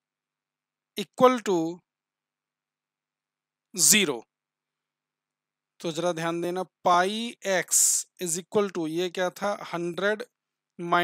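A man speaks calmly and explains into a close microphone.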